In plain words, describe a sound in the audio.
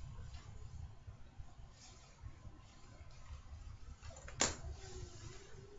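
Plastic sheeting rustles close by.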